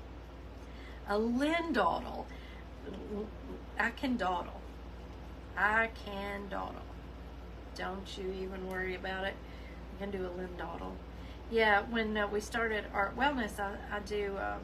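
A woman talks calmly and cheerfully to a nearby microphone.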